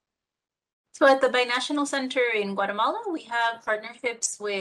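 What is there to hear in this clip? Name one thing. A second woman explains at length over an online call.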